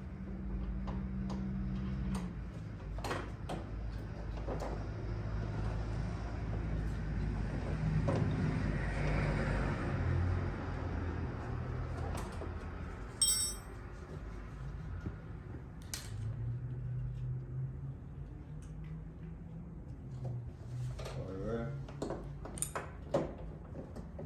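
Small plastic clicks and knocks sound from a car door being worked on.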